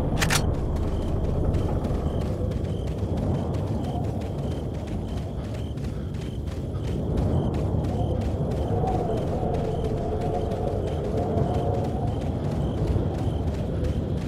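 Footsteps crunch steadily over rough ground.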